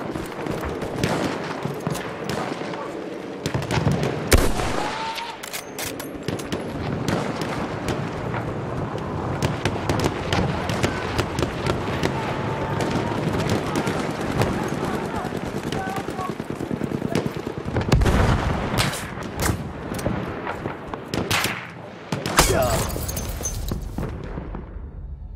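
Gunfire and explosions crackle and boom in the distance.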